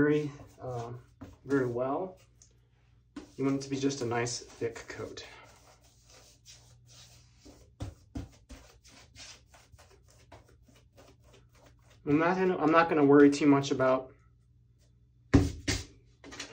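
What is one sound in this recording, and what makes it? A small brush rubs across a smooth surface in quick, soft strokes.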